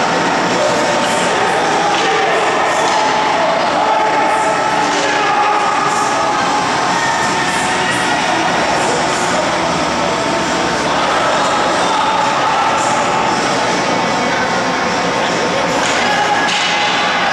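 A crowd murmurs and chatters in the stands.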